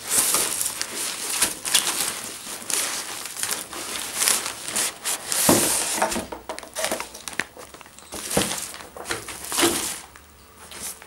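A fabric bag rustles and slides out of a cardboard box.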